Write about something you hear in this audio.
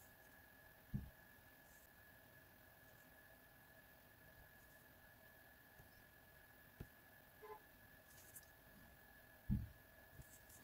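A marker pen taps on paper.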